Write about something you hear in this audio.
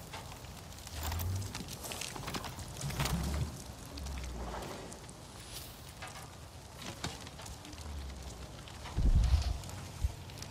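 Footsteps thud softly through leafy undergrowth.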